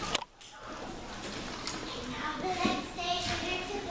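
Children talk quietly in a large echoing hall.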